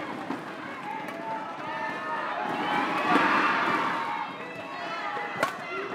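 A large crowd cheers and murmurs in a big echoing hall.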